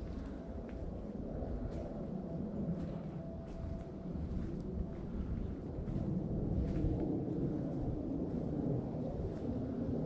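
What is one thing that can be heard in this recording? Wind rustles through the trees outdoors.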